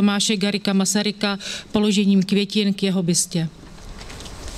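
A woman speaks into a microphone over a loudspeaker, outdoors.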